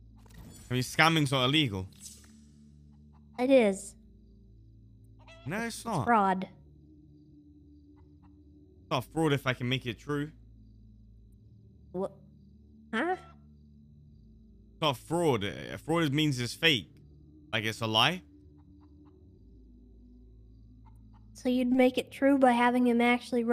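A man talks calmly, heard through a microphone.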